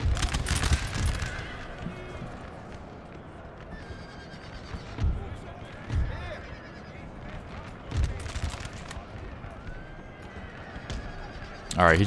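Cannons boom now and then in a heavy, rumbling battle.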